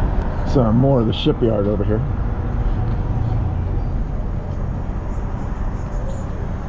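A sightseeing bus engine rumbles low while driving.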